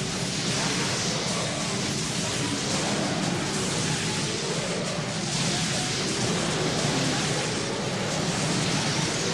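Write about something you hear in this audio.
Magic spells blast and weapons clash in a busy fight.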